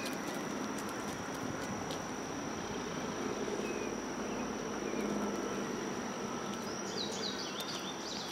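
A woman calls short commands to a dog outdoors.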